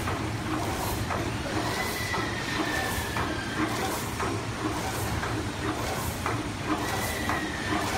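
A machine runs with a steady hum.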